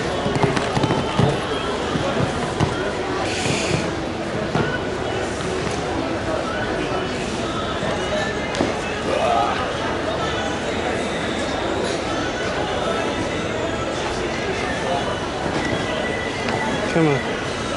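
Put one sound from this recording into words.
A horse's hooves thud on sand as it canters.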